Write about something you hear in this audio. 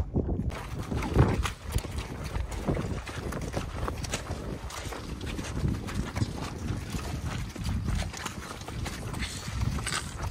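Horses' hooves thud softly on wet grass.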